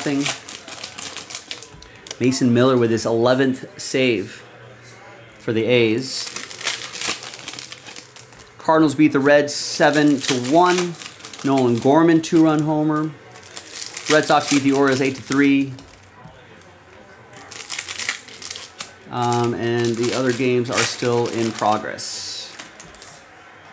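Foil card packs crinkle and tear as they are opened.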